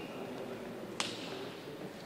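A racket strikes a shuttlecock with a sharp pop.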